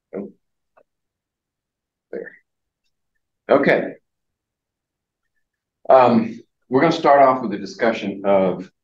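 An elderly man lectures close to the microphone, with pauses.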